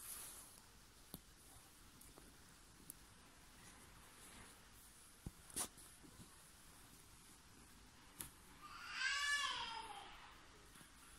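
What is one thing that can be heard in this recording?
Thread is pulled through cloth with a soft rustle.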